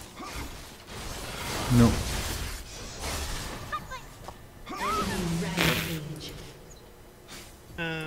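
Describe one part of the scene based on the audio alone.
Magic blasts and weapon clashes ring out in bursts.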